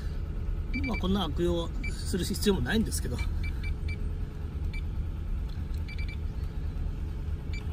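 A card terminal beeps several times.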